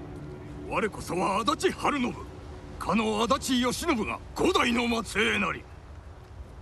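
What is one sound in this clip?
A middle-aged man speaks slowly and proudly.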